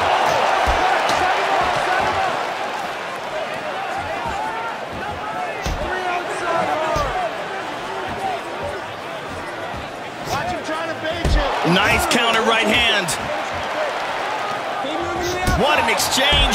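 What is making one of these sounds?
Blows land on a body with dull thuds.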